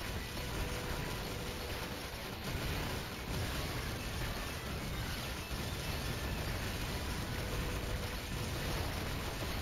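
Explosions boom and crackle rapidly.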